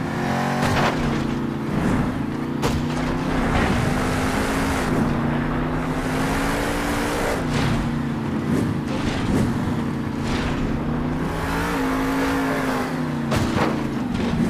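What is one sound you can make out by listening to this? Monster truck tires thud as the truck lands and crashes.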